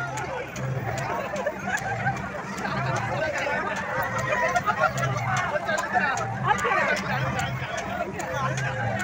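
A crowd of people chatters and shouts nearby.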